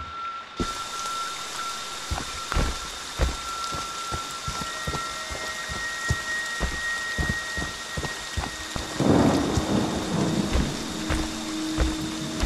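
Heavy footsteps thud steadily.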